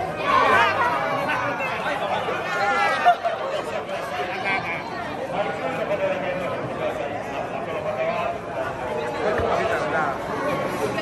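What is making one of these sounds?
A crowd of men and women cheers and shouts excitedly close by, indoors in an echoing hall.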